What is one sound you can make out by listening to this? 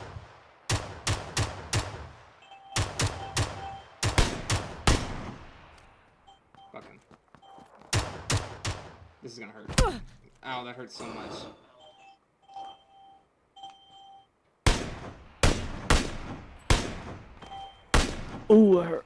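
Rifle shots crack out in quick bursts, echoing outdoors.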